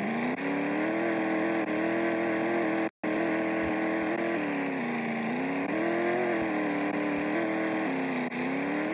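A small car engine hums steadily, its pitch rising and falling as it revs.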